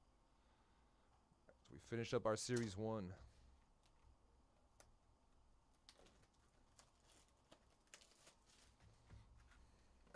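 Cardboard and plastic wrap rustle and crinkle under handling.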